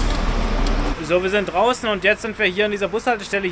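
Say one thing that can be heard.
A young man talks excitedly close to the microphone outdoors.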